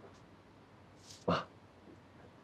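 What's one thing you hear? A man speaks briefly and calmly.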